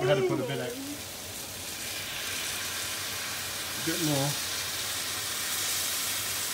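Liquid sizzles and hisses in a hot pan.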